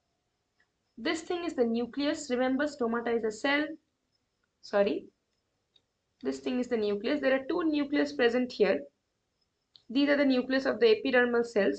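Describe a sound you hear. A young woman speaks calmly and clearly into a close microphone, explaining.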